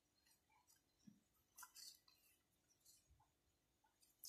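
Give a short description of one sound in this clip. Playing cards rustle and slide softly in a hand.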